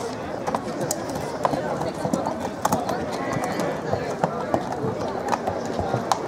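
Horse hooves clop on pavement.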